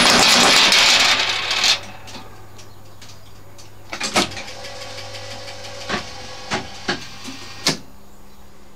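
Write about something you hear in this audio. A slot machine hums steadily.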